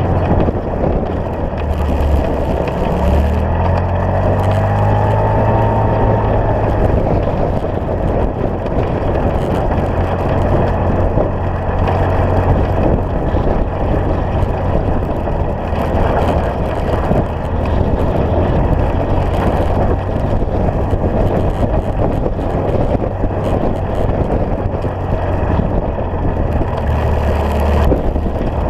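Tyres crunch and rattle over a gravel road.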